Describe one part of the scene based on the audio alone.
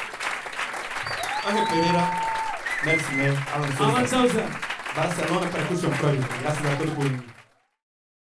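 A young man speaks with animation into a microphone, heard through loudspeakers.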